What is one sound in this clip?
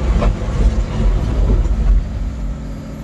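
A heavy machine's hydraulics rumble and thud loudly.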